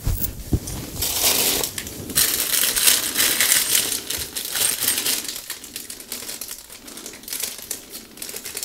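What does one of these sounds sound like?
Plastic wrapping crinkles and rustles in a hand.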